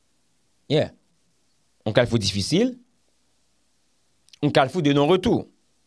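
A young man speaks calmly and expressively into a close microphone, in short bursts with pauses.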